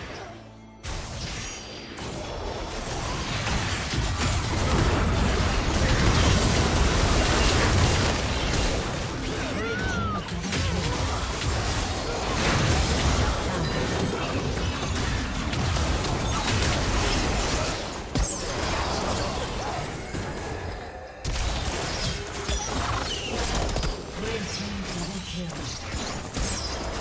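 Spell effects whoosh, crackle and blast in a fast game fight.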